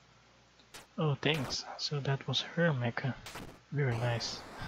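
A heavy robot crashes down with loud metallic booms.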